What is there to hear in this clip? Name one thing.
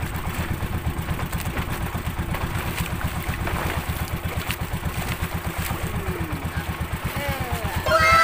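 Water splashes as a fish thrashes beside a boat.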